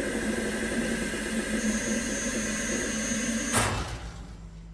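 A machine hums loudly and steadily, then cuts out.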